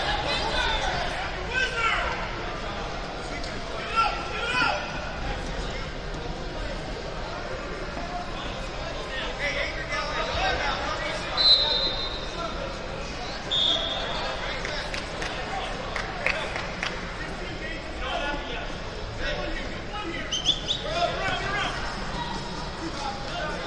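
A crowd of spectators chatters and shouts in a large echoing hall.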